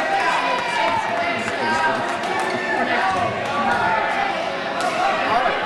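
A crowd of men and women chatters loudly in a large echoing hall.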